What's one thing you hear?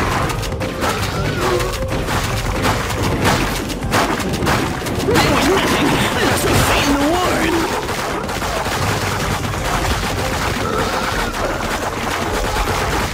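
Guns fire rapidly in a game.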